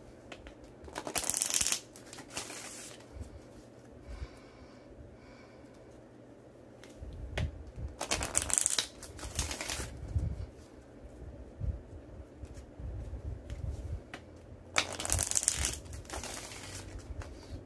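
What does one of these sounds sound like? Playing cards riffle and flutter as hands shuffle them in short bursts.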